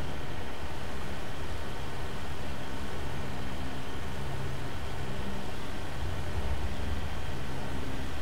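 Water splashes and sprays under a moving vehicle.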